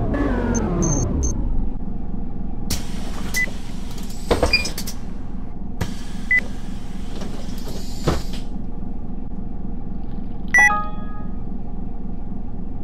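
A city bus engine winds down and idles.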